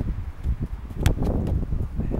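A child kicks a football with a thud.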